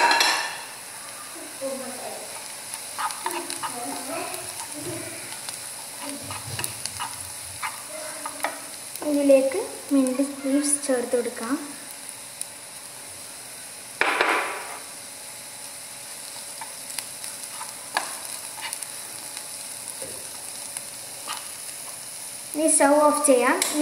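A spatula scrapes and clatters against a frying pan.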